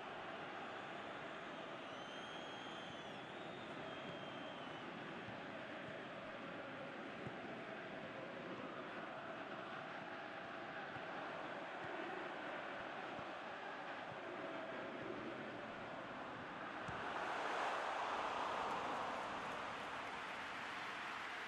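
A stadium crowd roars and cheers steadily, swelling louder near the end.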